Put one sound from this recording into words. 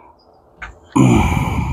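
A chainsaw engine starts and roars loudly.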